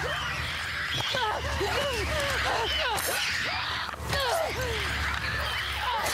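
A creature shrieks and snarls close by.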